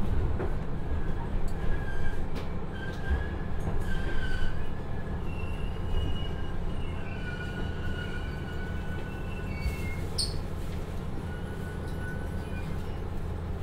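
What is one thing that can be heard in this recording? Train brakes squeal as the train comes to a stop.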